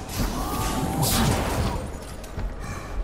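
A large creature growls and grunts loudly.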